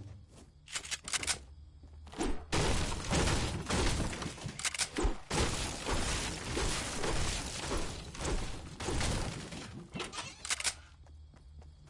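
A pickaxe strikes wood and walls in quick, heavy blows.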